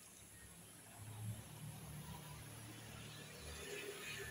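Traffic rumbles low on a nearby city street.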